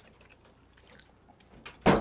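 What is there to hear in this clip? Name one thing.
A young woman sips a drink from a mug.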